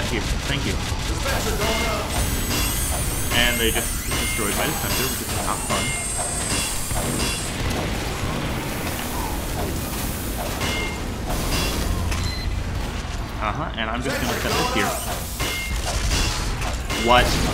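A metal wrench clanks repeatedly against a metal machine.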